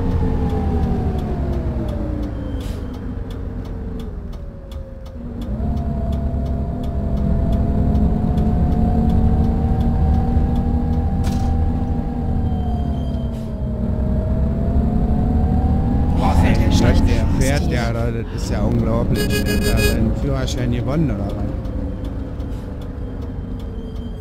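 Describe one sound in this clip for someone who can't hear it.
A bus engine drones and hums, rising and falling in pitch as it speeds up and slows down.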